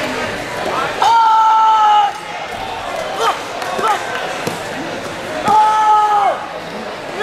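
A young man shouts sharply twice.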